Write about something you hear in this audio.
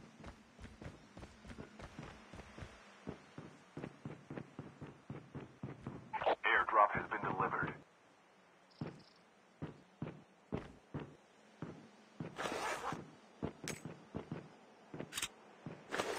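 Footsteps tap quickly on a hard surface.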